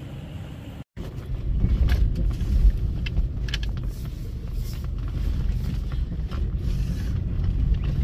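A car bumps and rattles over rough dirt.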